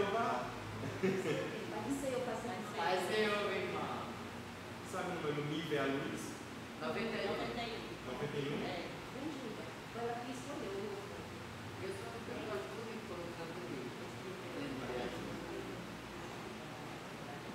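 A man speaks over a microphone in an echoing room, reading aloud calmly.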